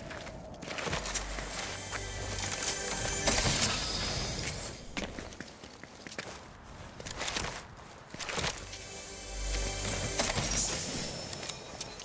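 A treasure chest hums and chimes as it is opened.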